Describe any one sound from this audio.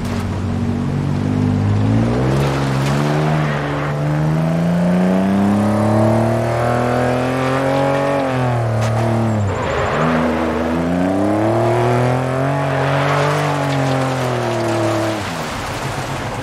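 A rally car engine revs hard, rising and falling in pitch.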